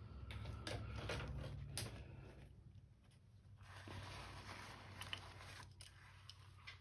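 A paper towel rustles and crinkles.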